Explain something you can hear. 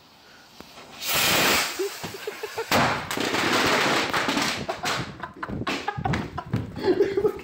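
A firework hisses and sputters loudly.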